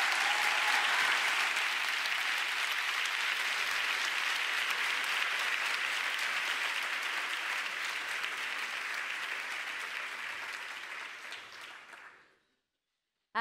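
An audience applauds loudly in a large hall and the applause slowly fades.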